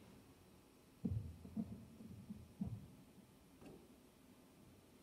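An electric guitar is strummed softly.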